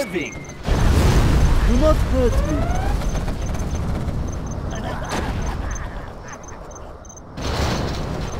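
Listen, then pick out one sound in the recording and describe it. Explosions boom with a deep, heavy rumble.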